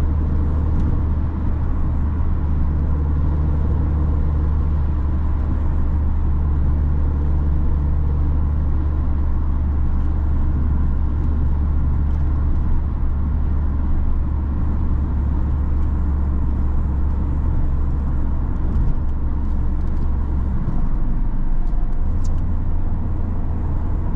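A small car engine hums steadily from inside the cabin.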